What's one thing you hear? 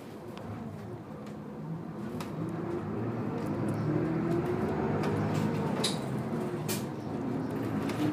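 A bus engine revs up and rises in pitch as the bus pulls away.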